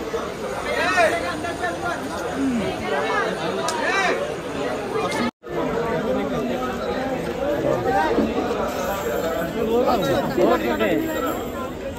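A crowd of men talk and shout all around, close by.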